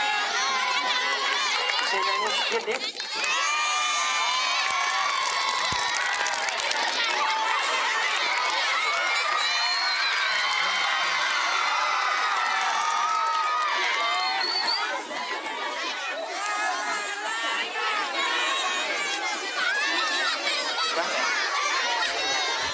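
A large crowd of teenagers chatters and shouts.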